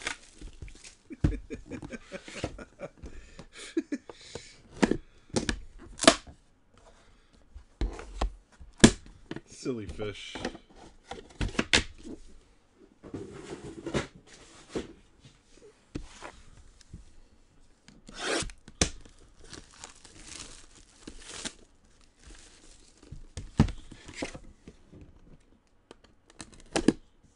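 Cardboard boxes knock and slide on a table.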